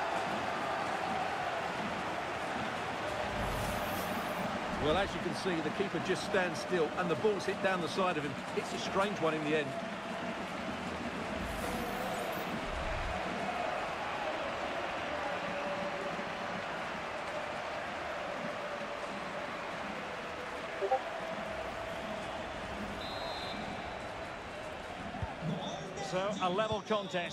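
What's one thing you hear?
A stadium crowd roars steadily in the background.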